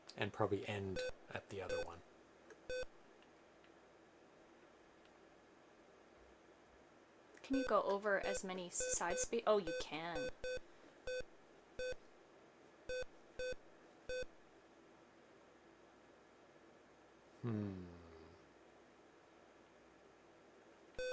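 Short electronic beeps sound from a video game.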